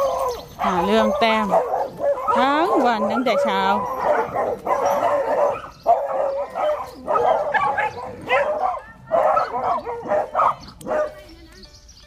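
Dogs whine and howl close by.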